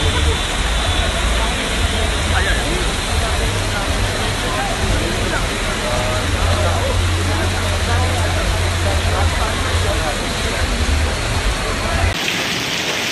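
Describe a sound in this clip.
Strong wind roars and buffets loudly outdoors.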